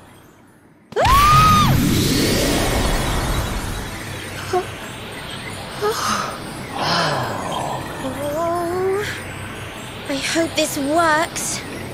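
A magical whirlwind roars and swirls with a rushing whoosh.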